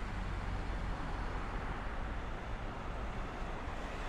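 A taxi drives past.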